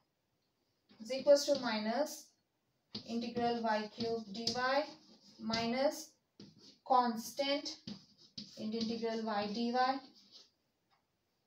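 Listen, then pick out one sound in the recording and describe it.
A young woman speaks calmly and clearly, as if explaining.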